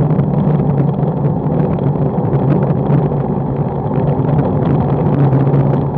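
Wind rushes and buffets past close by.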